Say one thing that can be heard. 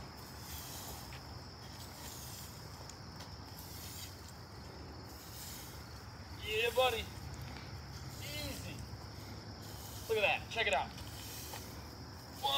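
Leafy branches scrape and rustle along a paved surface.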